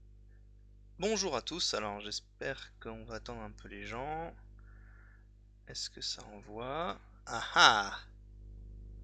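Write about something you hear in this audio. A young man speaks calmly into a headset microphone, heard up close.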